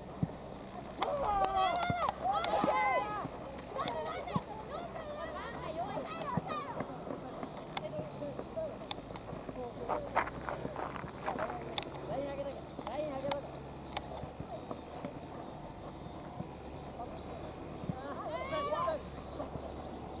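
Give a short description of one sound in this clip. Boys shout to each other across an open field.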